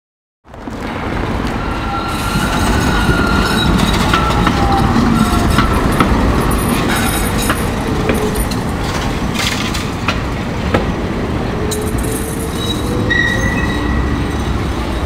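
A tram's motor whines, rising and falling in pitch.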